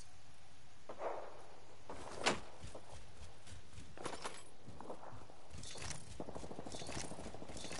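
Short game sound effects click and thump.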